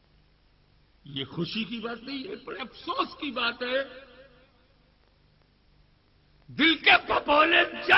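An elderly man speaks slowly and earnestly through a microphone and loudspeakers.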